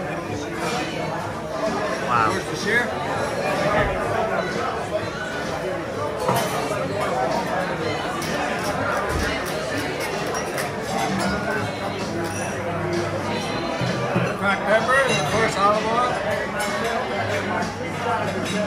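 Salad servers clink against a wooden bowl.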